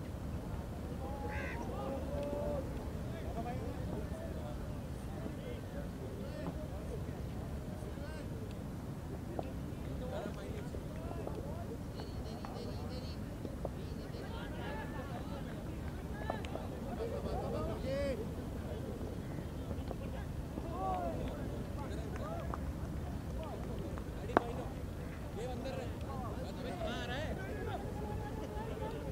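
Men call out to each other in the distance outdoors.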